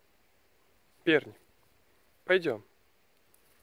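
A dog barks twice loudly.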